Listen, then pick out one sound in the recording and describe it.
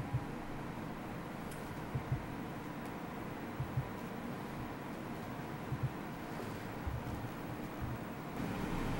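Soft thumps knock against a desk near a microphone.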